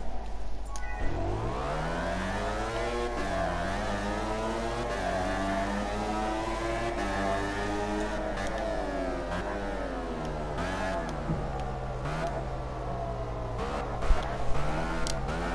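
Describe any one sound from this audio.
A racing motorcycle engine roars, revving up and down through the gears.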